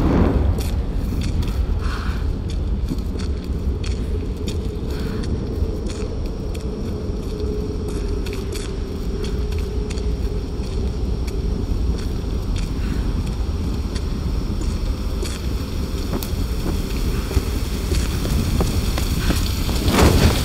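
A torch flame crackles and roars steadily close by.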